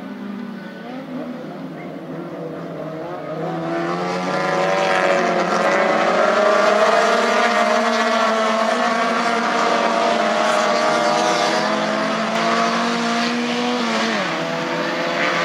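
Several small racing car engines roar and rev loudly.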